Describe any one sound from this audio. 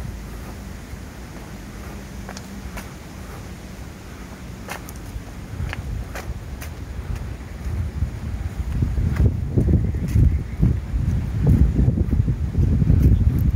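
Water rushes faintly from a spillway far off.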